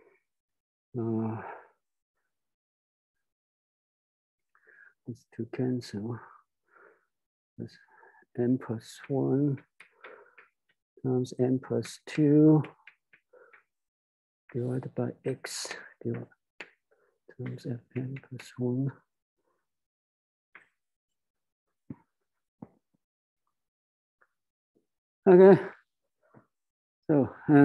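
A man lectures calmly, close by.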